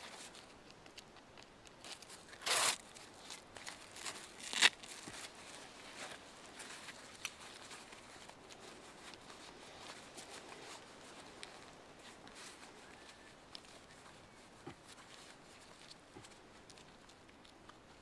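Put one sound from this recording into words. A strap is pulled tight.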